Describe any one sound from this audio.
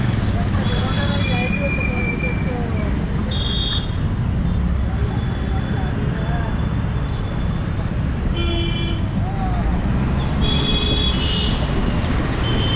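A car engine hums and tyres rumble on the road from inside a moving car.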